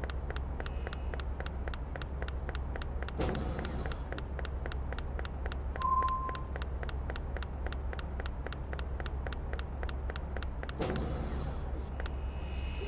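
Quick running footsteps tap steadily on a hard floor.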